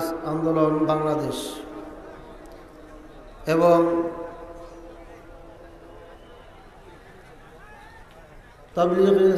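A middle-aged man speaks loudly and with feeling through a microphone and loudspeakers, echoing outdoors.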